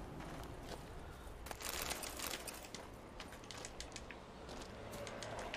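Footsteps crunch softly on snow.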